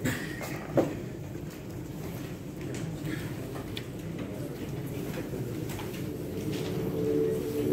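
Quiet murmuring voices from a group of people fill the room.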